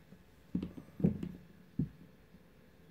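A plastic cable rustles and knocks as it is handled.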